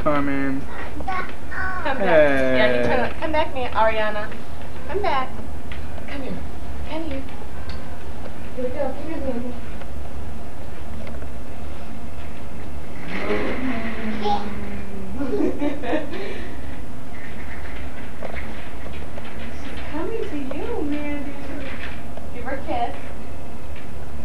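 A small child babbles and squeals nearby.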